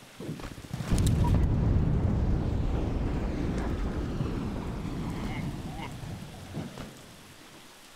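A heavy explosion booms and rumbles, then slowly fades.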